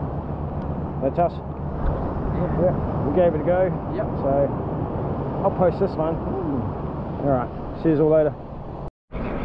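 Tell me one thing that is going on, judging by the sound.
A middle-aged man talks close up, outdoors in wind.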